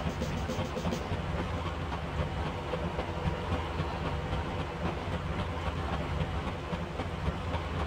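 Water splashes and rushes against a moving boat's hull.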